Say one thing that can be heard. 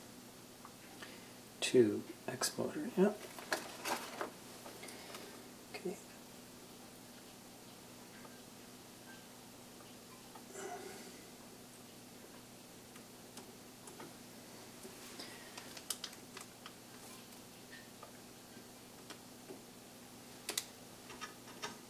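Hands click and rustle a plastic cable against a metal frame.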